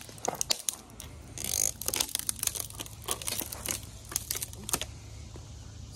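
A dry branch creaks and rustles as a boy pulls on it.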